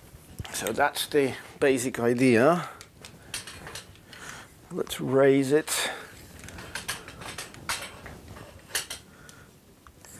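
A light stand clicks and rattles as it is adjusted.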